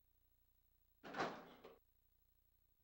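A door opens with a rattle.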